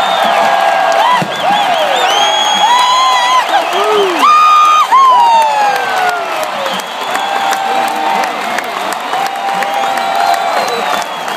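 A huge crowd roars and cheers in a large open stadium.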